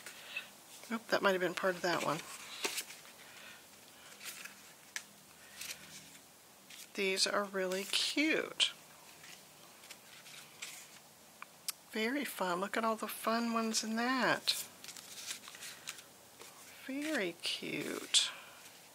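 Paper cards rustle and tap softly as they are handled.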